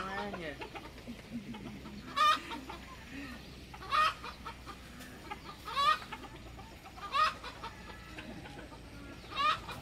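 A young man laughs.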